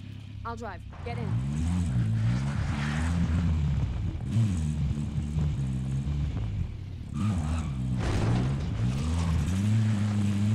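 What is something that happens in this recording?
A car engine starts and revs up and down.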